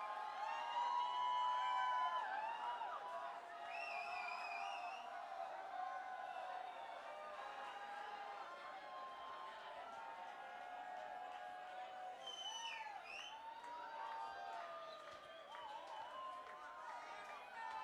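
A crowd whistles shrilly in a large echoing hall.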